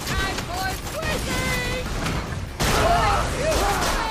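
Gunshots from a video game crack in quick bursts.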